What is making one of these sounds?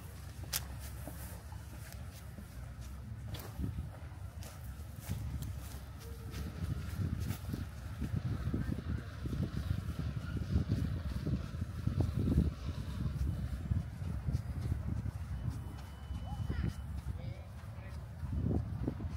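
Wind blusters across an open shore.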